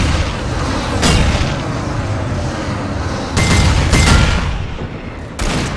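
A shotgun fires in sudden loud blasts.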